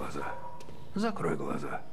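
A young man speaks quietly, close by.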